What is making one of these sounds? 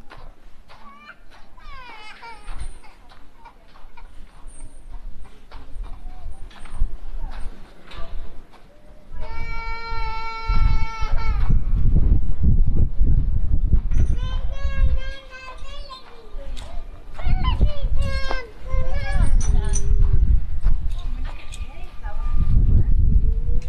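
Wind rumbles outdoors in gusts.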